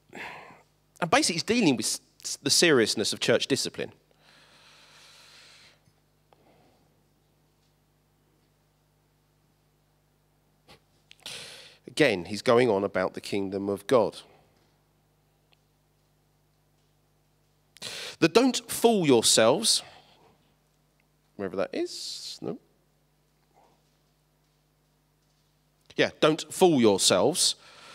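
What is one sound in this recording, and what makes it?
A middle-aged man speaks with animation through a microphone, in bursts with long pauses, in a large echoing hall.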